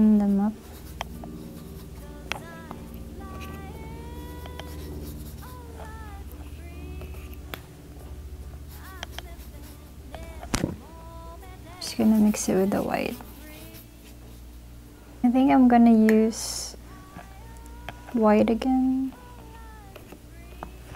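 A paintbrush scrubs and swirls softly in wet paint.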